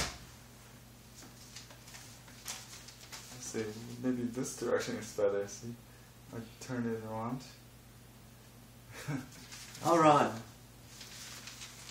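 A sheet of paper rustles as it is lifted and handled.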